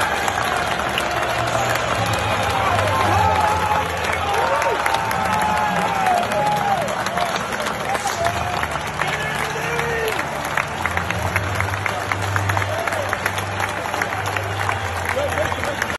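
A large crowd chatters and cheers outdoors.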